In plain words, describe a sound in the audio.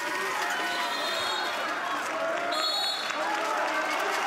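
A referee blows a shrill whistle twice.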